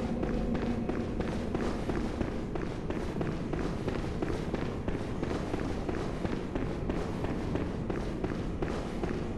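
Footsteps run quickly over a stone floor.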